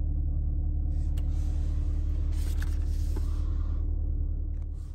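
A paper sheet rustles as a hand handles it.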